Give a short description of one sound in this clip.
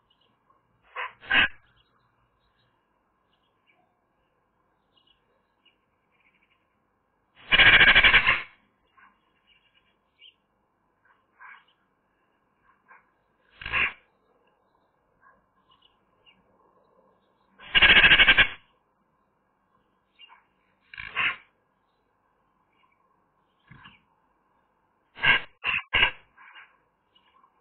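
A Eurasian magpie gives harsh chattering calls close by.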